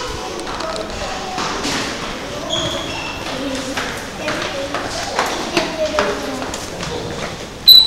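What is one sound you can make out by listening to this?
Footsteps of passers-by tap on a stone floor.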